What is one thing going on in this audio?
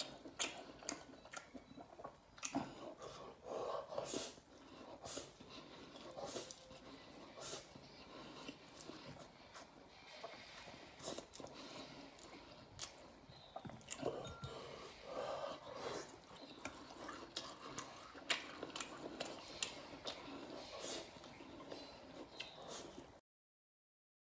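A man chews food with wet smacking sounds.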